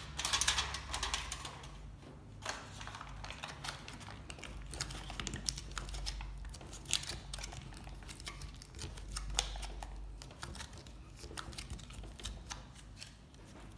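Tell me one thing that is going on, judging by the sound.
Aluminium foil crinkles and rustles as hands wrap and press it.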